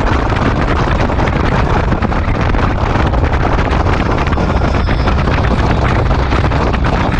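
Wind buffets and roars loudly past a fast-moving motorcycle.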